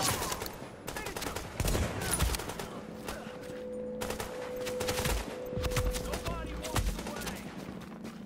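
Gunshots ring out in quick bursts.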